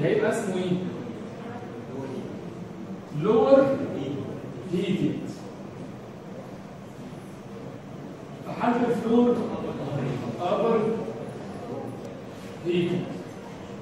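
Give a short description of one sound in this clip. A man speaks calmly, pausing between phrases.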